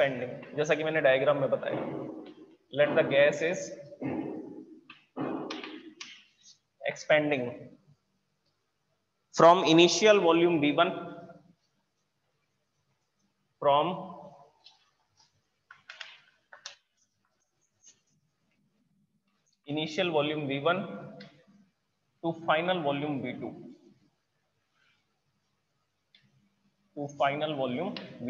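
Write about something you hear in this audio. A man speaks steadily in a calm lecturing voice, nearby.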